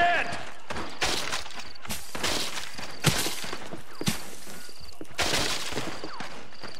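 Rifles fire in sharp cracks.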